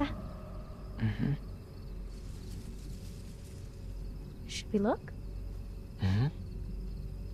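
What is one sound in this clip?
A woman murmurs softly in agreement, close by.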